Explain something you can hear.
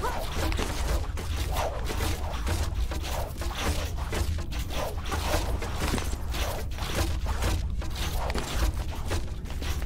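Hands grab and scrape along a stone ledge.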